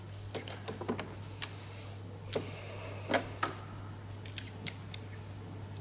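Mahjong tiles click sharply as they are placed on a table.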